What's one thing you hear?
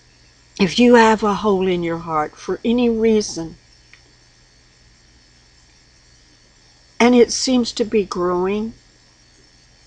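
An elderly woman speaks calmly and close to a microphone, pausing between phrases.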